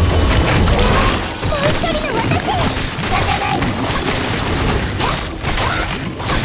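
Video game battle effects crash and boom rapidly.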